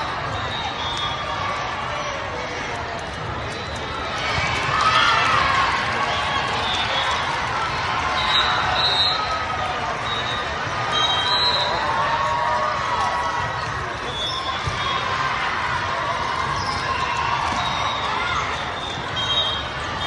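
Sneakers squeak on the court floor.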